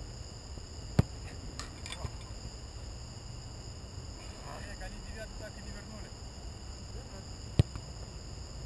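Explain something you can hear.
A soccer ball is kicked with a sharp thud.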